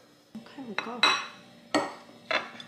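A plate is set down on a stone counter with a knock.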